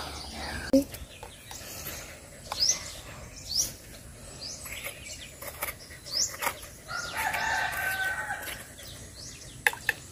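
A spoon scrapes the flesh inside a coconut shell.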